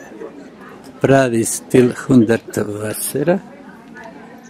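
An adult man speaks loudly close by.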